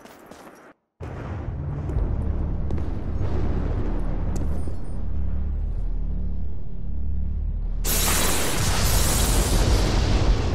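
Thunder rumbles deep and steady in the distance.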